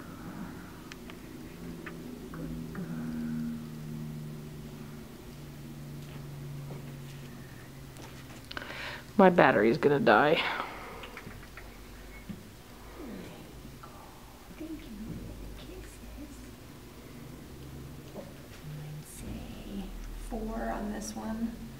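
A young woman talks softly and close by.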